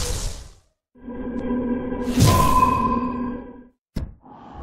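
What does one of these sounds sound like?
A magical burst swells with a loud roaring whoosh.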